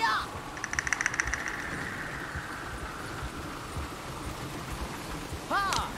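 Horse hooves clop on a dirt track.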